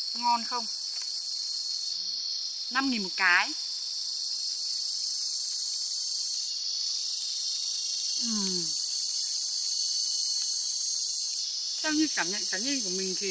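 A young woman speaks up close with animation, in short bursts.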